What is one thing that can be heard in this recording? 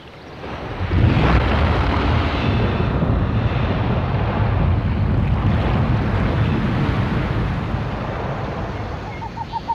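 River water flows and laps steadily.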